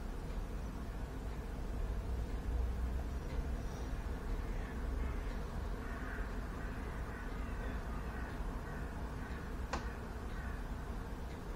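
A young man speaks quietly close to the microphone.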